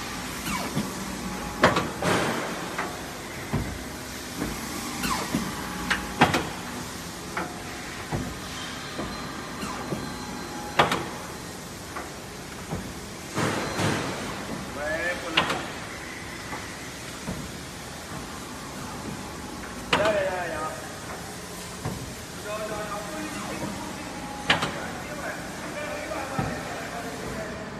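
A large machine hums steadily.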